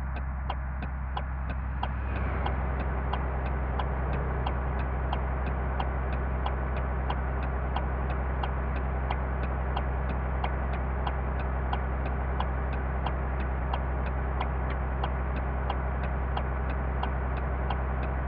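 A bus engine hums steadily.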